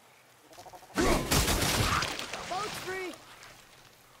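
A crystal shatters with a loud, ringing magical burst.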